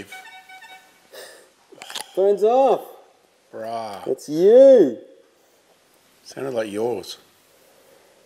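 A man speaks through a respirator mask, muffled, close by.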